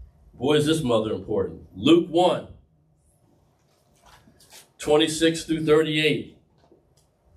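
A man speaks calmly and clearly, with pauses between phrases.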